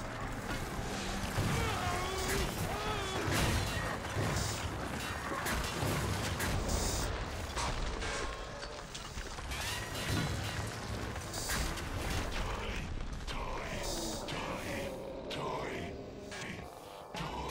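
Monsters snarl and shriek nearby.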